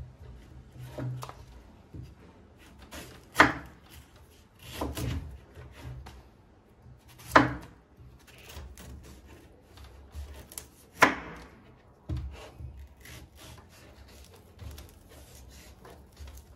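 A knife shaves and scrapes at a fruit's husk.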